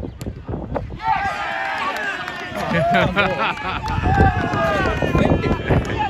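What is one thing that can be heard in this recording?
Several men cheer loudly.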